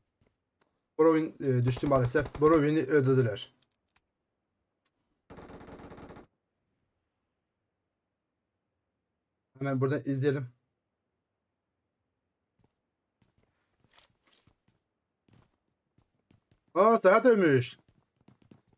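A man speaks loudly and with animation into a close microphone, in short bursts.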